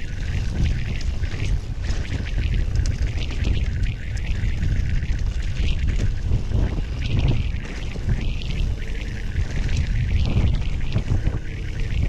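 Wind rumbles heavily past the rider outdoors.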